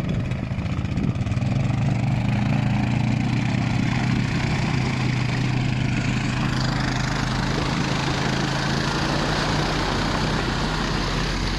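An all-terrain vehicle engine rumbles steadily up close.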